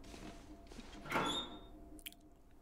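A metal locker door swings open with a creak.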